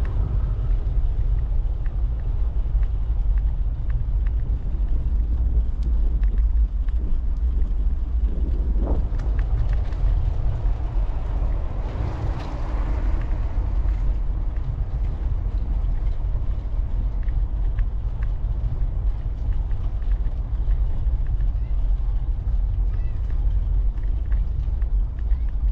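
Wind rumbles loudly and steadily across a microphone outdoors.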